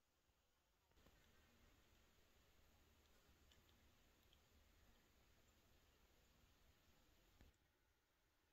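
Water trickles and drips softly down a rock face.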